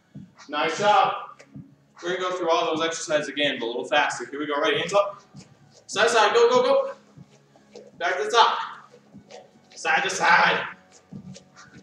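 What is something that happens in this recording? A young man speaks loudly in short bursts nearby.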